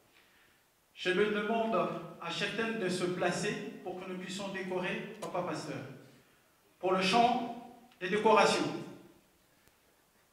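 A man speaks loudly into a microphone, heard through loudspeakers in an echoing hall.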